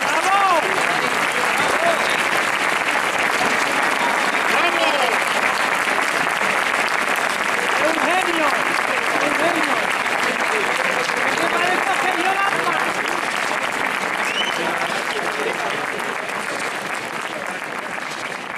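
Many people applaud loudly outdoors, fading slightly toward the end.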